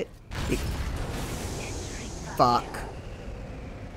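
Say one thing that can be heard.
An explosion roars and rumbles.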